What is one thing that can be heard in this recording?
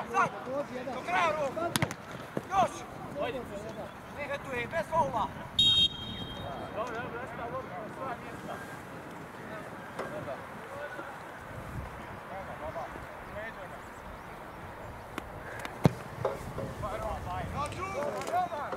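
Men shout to each other at a distance outdoors.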